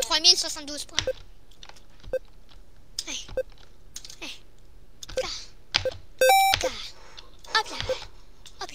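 A short electronic blip sounds each time a game character jumps.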